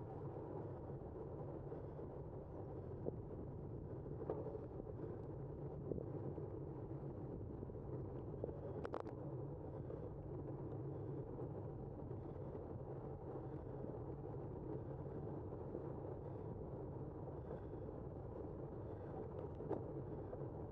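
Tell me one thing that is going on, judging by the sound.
Bicycle tyres roll steadily on pavement.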